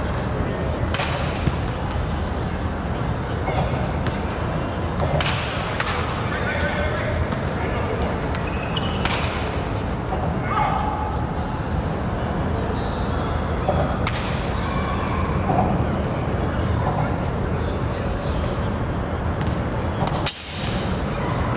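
A bat cracks against a baseball, again and again.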